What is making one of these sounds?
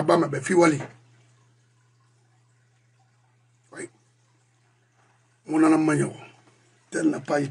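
A middle-aged man speaks calmly and close to a microphone, in short bursts with pauses.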